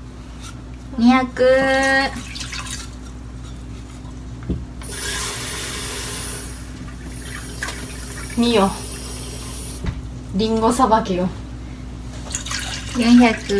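A young woman talks and sings playfully close by.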